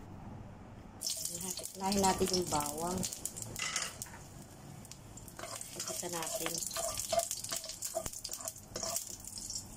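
Garlic sizzles and crackles in hot oil.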